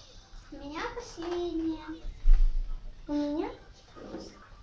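A young girl speaks in a high, sing-song voice close by.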